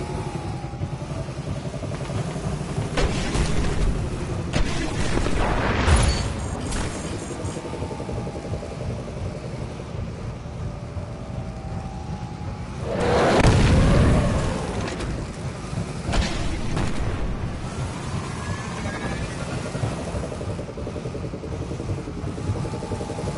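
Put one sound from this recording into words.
A vehicle's guns fire in quick bursts.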